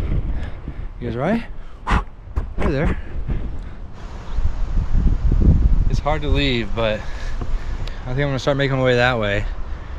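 A man talks with animation close to a microphone, outdoors.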